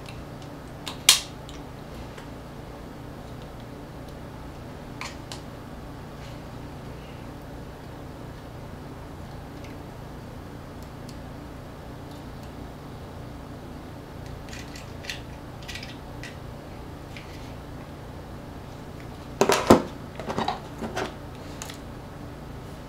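Small plastic pieces click and tap against each other on a table.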